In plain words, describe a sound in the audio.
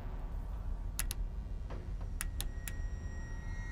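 Short menu clicks tick several times.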